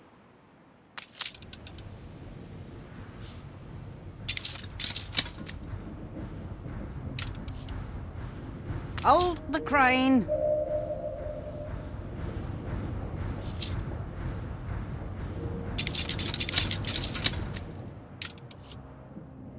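Soft interface clicks tick in quick bursts.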